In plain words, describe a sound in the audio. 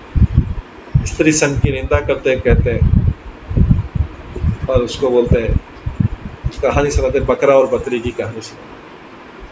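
A middle-aged man speaks calmly into a microphone, heard as over an online call.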